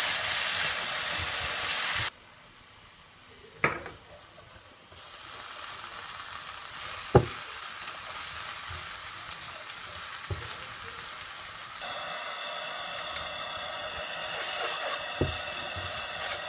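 Diced apple sizzles in a nonstick frying pan.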